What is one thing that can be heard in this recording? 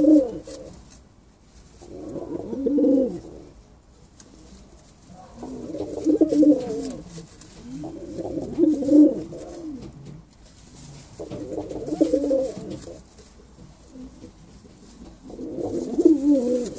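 A pigeon coos in deep, rolling bursts close by.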